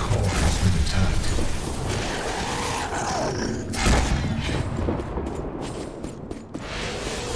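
Gunfire and blasts ring out in quick bursts.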